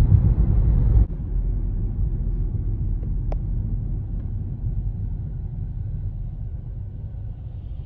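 A car idles quietly at a stop.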